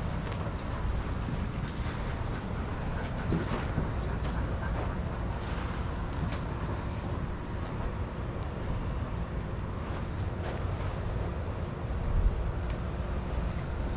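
Dogs' paws patter and scuff on sandy ground.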